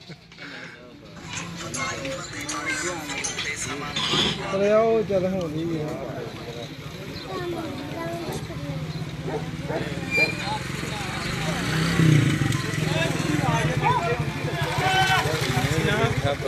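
A crowd of men murmurs and talks nearby outdoors.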